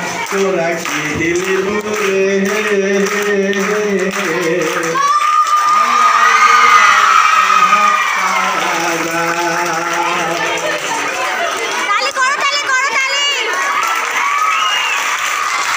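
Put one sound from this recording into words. A man sings loudly into a microphone through a loudspeaker.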